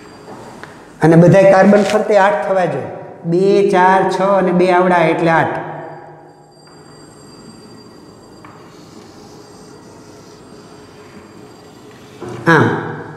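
An elderly man speaks calmly and clearly, explaining.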